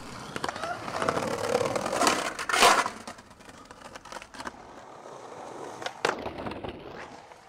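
A skateboard grinds along a ledge.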